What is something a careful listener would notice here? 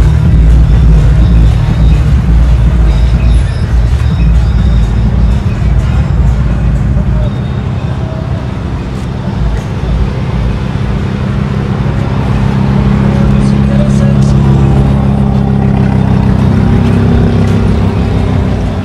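A sports car engine idles with a deep, loud rumble.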